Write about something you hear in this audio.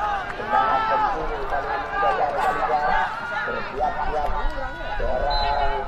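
A crowd of men and boys shouts and cheers outdoors.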